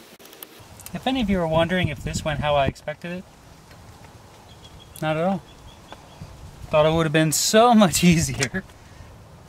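A young man talks close by, calmly explaining.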